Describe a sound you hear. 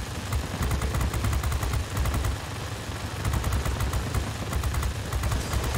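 A plane's engine drones steadily.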